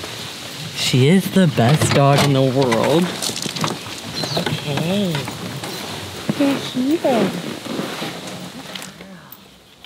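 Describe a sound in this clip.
A young woman talks softly close by.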